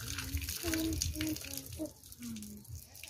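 Water splashes onto the ground as it pours through a basket.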